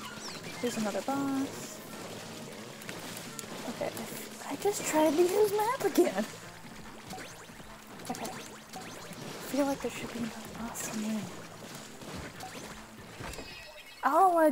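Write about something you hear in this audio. Game weapons fire with rapid splattering bursts.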